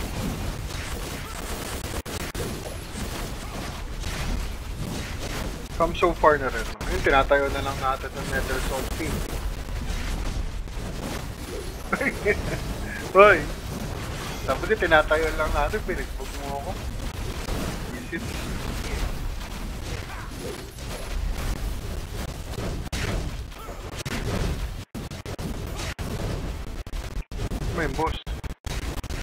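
Game combat effects crash and whoosh over a steady rumble.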